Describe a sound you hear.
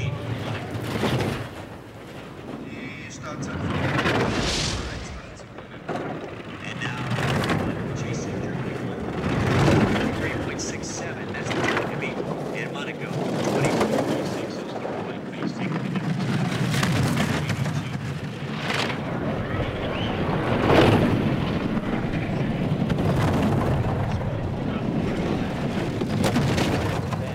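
A bobsled rumbles and scrapes along an icy track at high speed.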